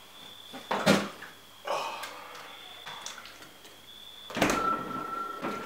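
A fridge door opens and bumps shut.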